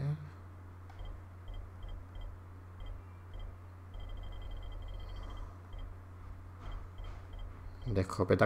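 Soft menu clicks tick as a selection moves down a list.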